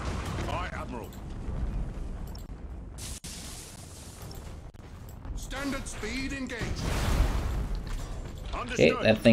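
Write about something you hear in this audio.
Space battle sound effects rumble and boom steadily in the background.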